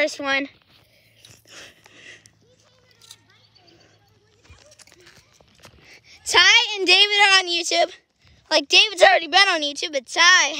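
A young child shouts excitedly close by.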